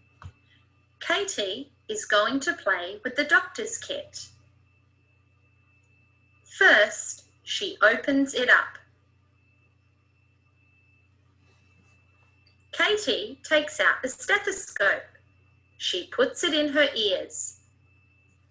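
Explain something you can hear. A woman speaks calmly into a microphone, close by.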